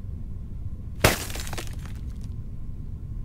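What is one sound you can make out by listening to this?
A heavy blow shatters a block of ice with a loud crack.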